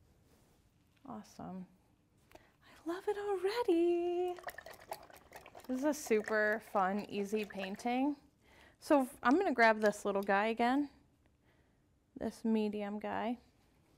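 A woman talks warmly and with animation into a close microphone.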